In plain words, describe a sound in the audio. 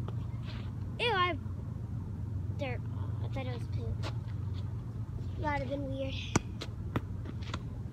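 A young girl talks nearby with animation.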